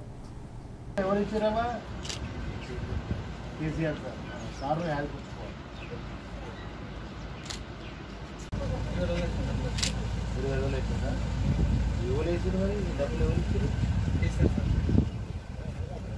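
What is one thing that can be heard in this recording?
A man speaks nearby in a calm voice.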